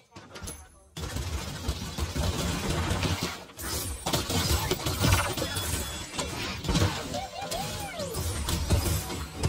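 Guns fire rapidly in a video game battle.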